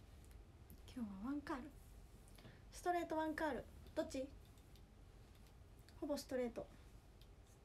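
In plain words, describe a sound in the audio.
A young woman talks softly and close by in short bursts.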